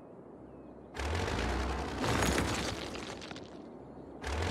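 A building collapses with a rumbling crash.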